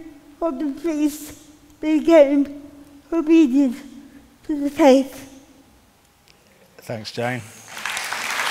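A woman speaks with emotion through a microphone, in short phrases.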